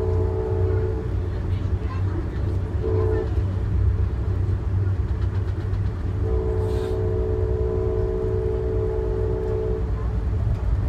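A train horn blows in long blasts.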